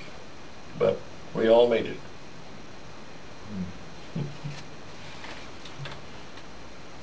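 An elderly man speaks briefly and quietly nearby, then falls silent.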